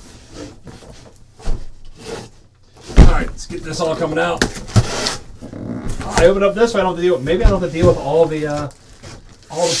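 Cardboard flaps rustle as a box is opened.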